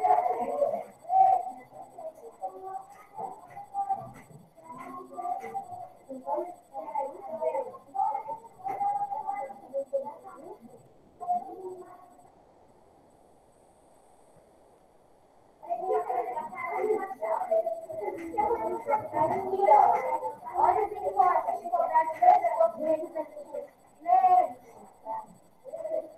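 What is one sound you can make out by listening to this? A woman talks calmly into a microphone, heard through an online call.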